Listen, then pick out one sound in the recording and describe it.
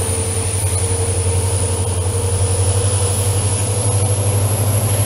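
A diesel locomotive engine throbs loudly.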